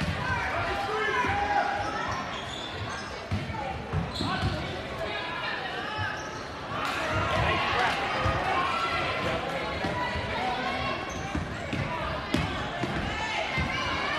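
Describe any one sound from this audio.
A crowd of spectators murmurs and chatters throughout a large echoing gym.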